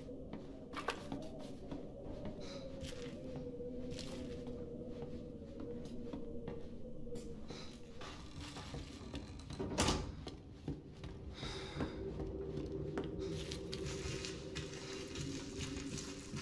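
Footsteps creak and thud slowly on wooden floorboards.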